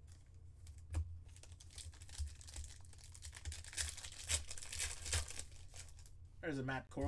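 A foil pack wrapper crinkles and tears as it is pulled open.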